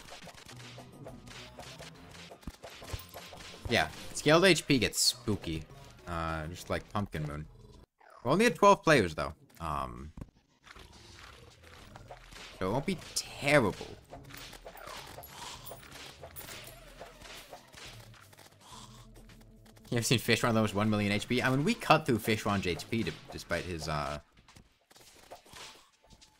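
Magic spells whoosh and zap in bursts, with sweeping rising and falling tones.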